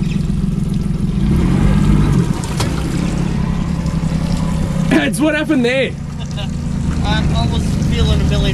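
An outboard motor hums steadily close by.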